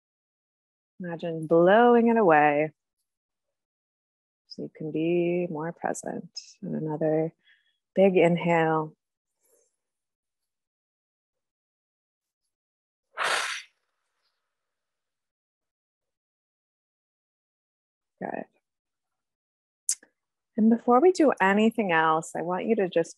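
A young woman speaks calmly into a close microphone over an online call, pausing between phrases.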